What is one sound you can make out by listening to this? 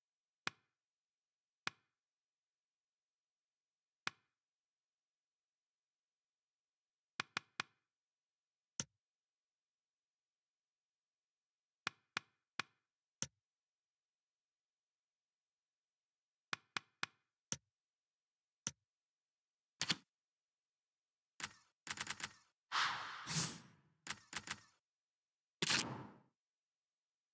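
Short game menu clicks sound as tabs change.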